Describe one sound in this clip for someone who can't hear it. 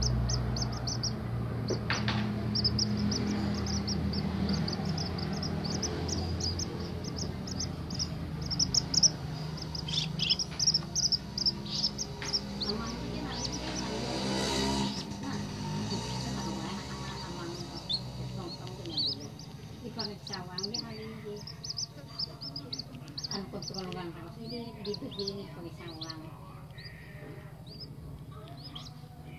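Baby birds cheep shrilly and rapidly, close by.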